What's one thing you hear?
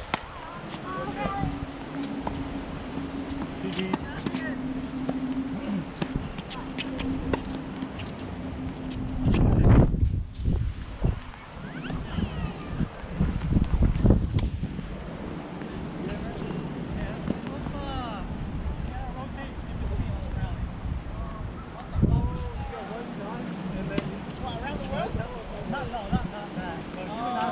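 A tennis ball is struck with rackets in a rally outdoors.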